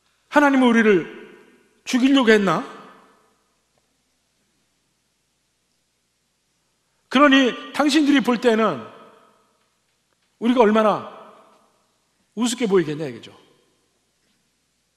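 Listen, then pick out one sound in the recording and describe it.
A middle-aged man speaks slowly and with emphasis through a microphone in a reverberant hall, pausing between phrases.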